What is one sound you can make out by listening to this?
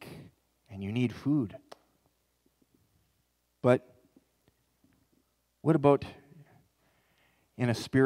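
A man speaks calmly into a microphone, his voice carried through loudspeakers in a large room.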